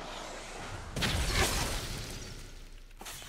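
A magical burst whooshes and shimmers.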